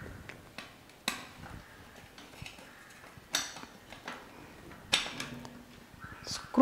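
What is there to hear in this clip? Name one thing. Metal fittings click and knock sharply as a hand works on a gas pipe.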